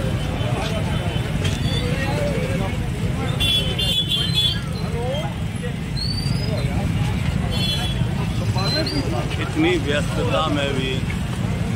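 Men talk with each other close by.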